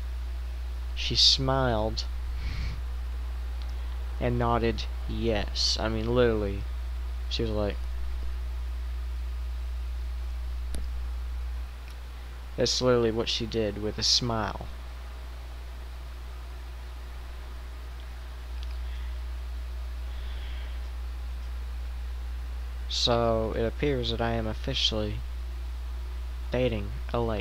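A young man talks calmly into a headset microphone, close up, in short bursts with pauses.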